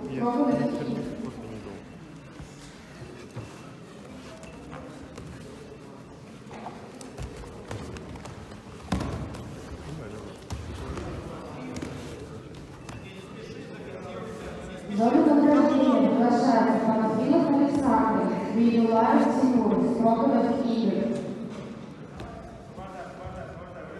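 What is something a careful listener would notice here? Wrestlers' bodies thump and shuffle on a padded mat.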